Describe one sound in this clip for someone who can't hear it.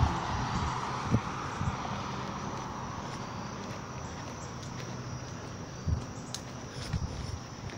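Footsteps walk steadily along a pavement.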